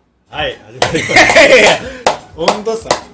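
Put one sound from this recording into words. Young men burst out laughing.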